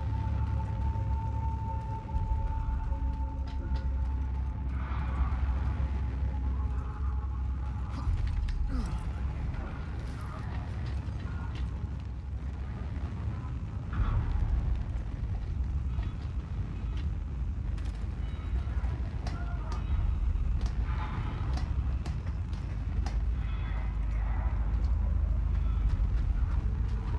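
Footsteps crunch on gravel and wooden floors.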